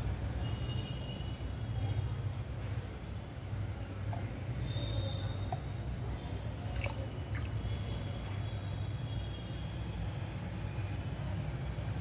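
Liquid pours into a small plastic cup.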